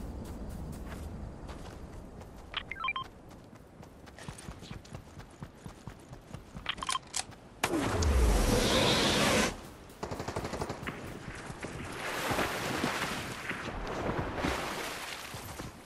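Footsteps run across sand.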